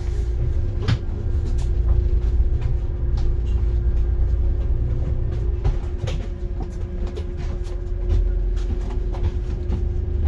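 A bus engine rumbles steadily from inside as the bus drives along a road.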